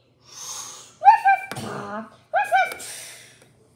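A small rubber toy squeaks sharply as a hand squeezes it.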